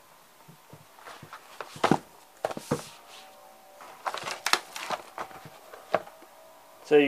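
Book pages rustle as they are turned by hand.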